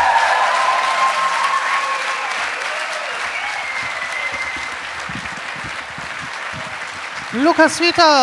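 An audience applauds and cheers in an echoing hall.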